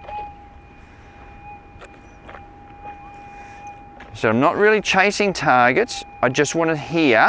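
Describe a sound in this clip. A metal detector gives a steady high hum.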